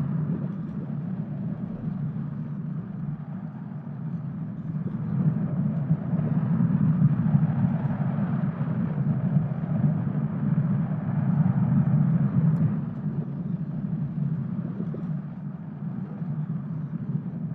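A ball rolls along a metal track with a steady low rumble.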